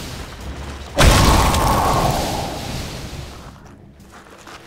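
An icy blast whooshes loudly and slowly fades.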